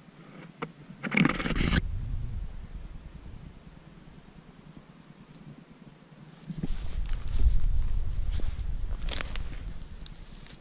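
Dry twigs and pine needles crackle underfoot.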